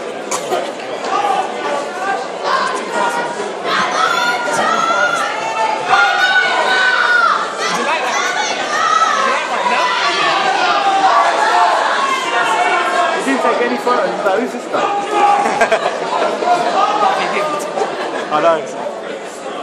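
Men talk nearby in loud voices.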